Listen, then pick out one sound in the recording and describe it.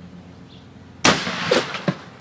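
A water-filled bottle bursts with a loud bang.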